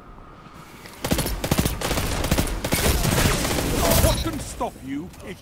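Rapid gunfire rattles loudly in a burst.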